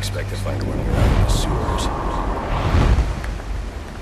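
A heavy blow lands in a fight.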